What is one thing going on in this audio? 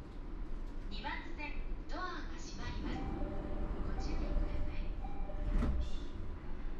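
Train doors slide shut with a thud.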